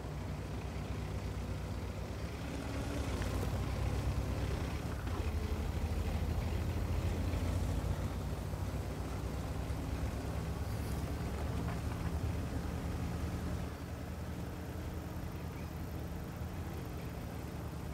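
A heavy tank engine rumbles steadily.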